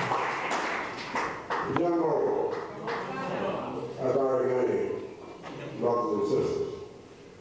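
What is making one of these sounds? An elderly man speaks slowly and emphatically into a microphone.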